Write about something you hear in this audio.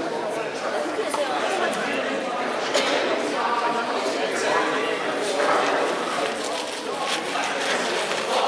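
A crowd of people chatters in a large echoing gym.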